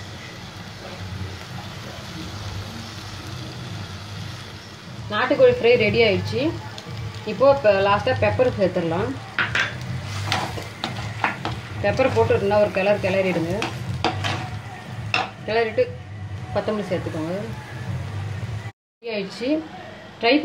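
A metal spatula scrapes and clatters against a clay pot.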